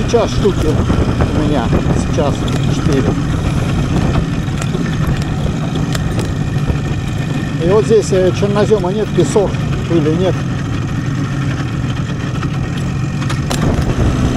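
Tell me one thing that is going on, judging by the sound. Tyres crunch on a gravel track.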